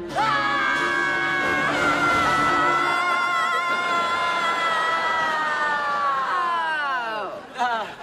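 A teenage girl screams loudly and at length.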